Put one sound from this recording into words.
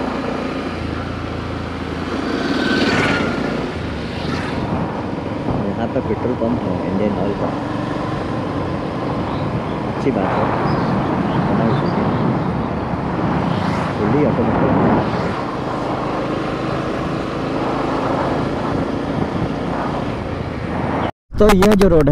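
Wind rushes and buffets past.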